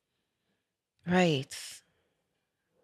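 A woman speaks briefly and calmly into a close microphone.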